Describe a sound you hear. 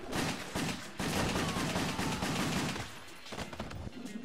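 Video game gunfire pops in quick bursts.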